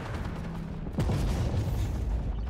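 A shell explodes with a heavy blast.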